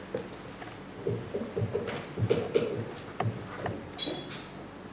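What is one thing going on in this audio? A young woman speaks into a microphone in an echoing hall.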